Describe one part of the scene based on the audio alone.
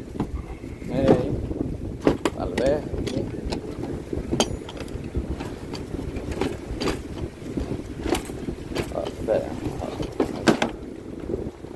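A plastic tackle box clicks and rattles as it is opened.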